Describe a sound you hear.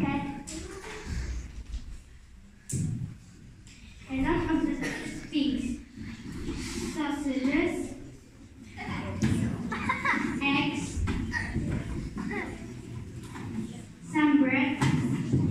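A young girl speaks with expression in an echoing hall.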